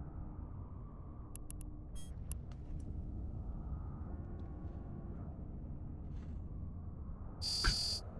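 A low spaceship engine hum rumbles steadily.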